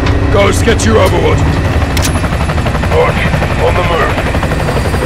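A helicopter's rotor rumbles steadily and loudly.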